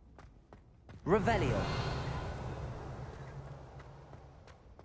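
A magic spell bursts with a bright, shimmering whoosh that slowly fades.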